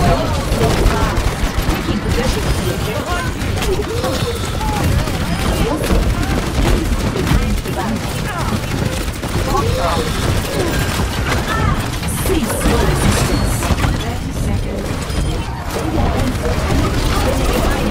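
Explosions boom in bursts.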